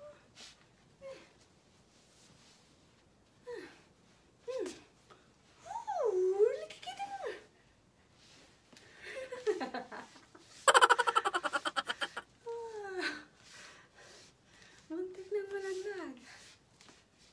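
A young woman speaks playfully close by.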